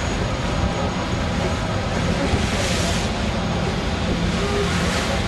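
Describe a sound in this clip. Wind blows over open water.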